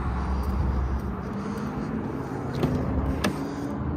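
A car door unlatches with a click and swings open.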